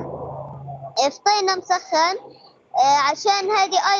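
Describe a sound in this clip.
A young boy speaks through a microphone.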